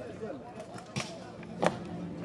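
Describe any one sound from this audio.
Fighters clash weapons with sharp knocks.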